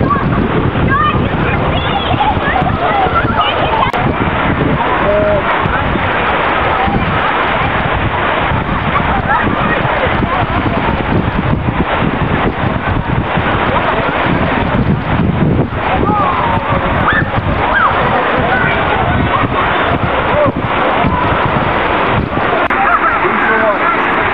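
Children shout and call out excitedly nearby.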